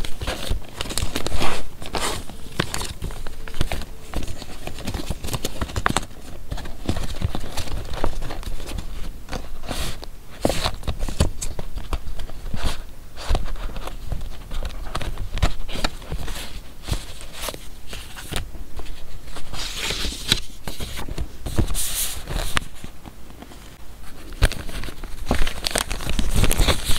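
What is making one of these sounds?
Stiff card taps and scrapes against paper.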